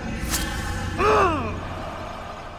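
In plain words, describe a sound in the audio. A man cries out in pain nearby.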